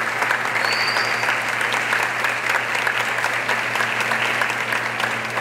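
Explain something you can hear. A large crowd claps steadily in a big echoing hall.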